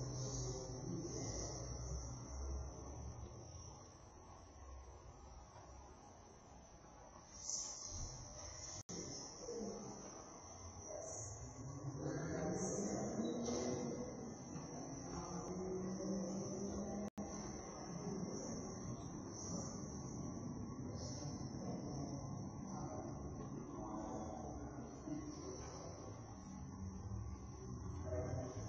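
Several adults chat quietly at a distance in a large echoing hall.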